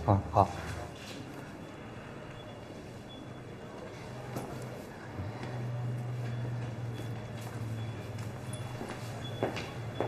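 A middle-aged man talks with animation nearby.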